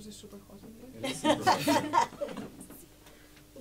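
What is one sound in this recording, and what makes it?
A woman laughs out loud.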